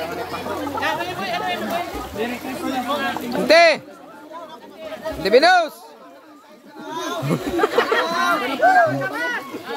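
Several women chatter and laugh loudly close by.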